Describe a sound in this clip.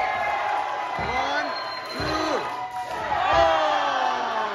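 Wrestlers thud onto a ring mat.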